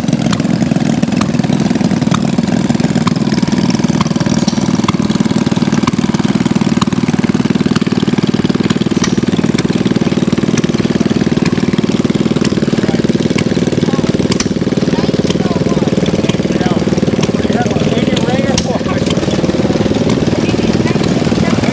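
Sharp pops and clicks ring out now and then from a running engine.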